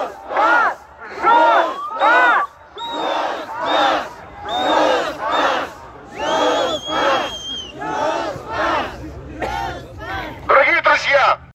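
A crowd of men and women chants slogans loudly in unison, in rhythmic bursts outdoors.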